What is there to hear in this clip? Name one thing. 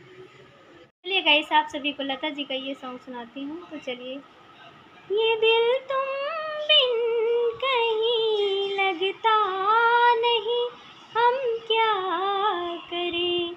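A young woman sings close to the microphone.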